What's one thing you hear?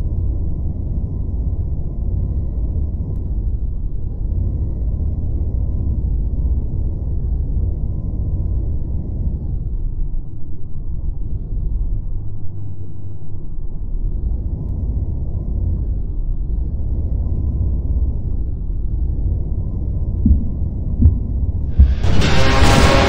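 A low engine rumble drones steadily.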